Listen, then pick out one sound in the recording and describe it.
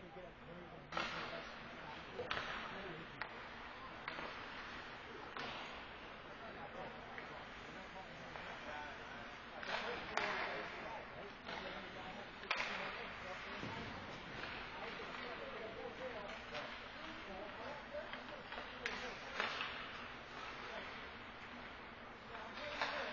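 Hockey sticks clack against a puck and the boards.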